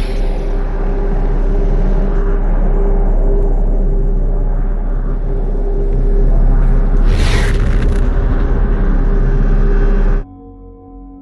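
A glowing portal hums steadily.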